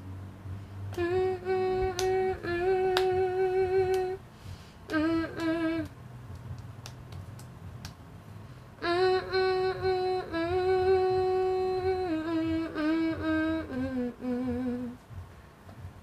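A young woman sings slow, long held notes close by.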